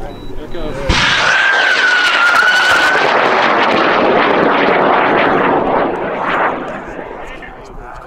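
A rocket launches with a sudden roaring rush that fades as it climbs away.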